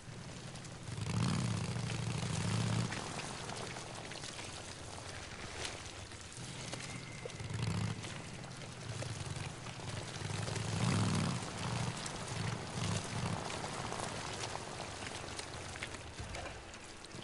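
A motorcycle engine rumbles and revs as it rides over rough ground.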